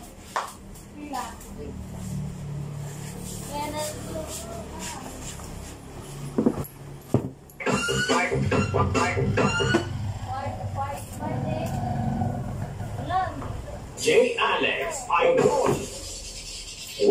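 Young women talk with animation nearby.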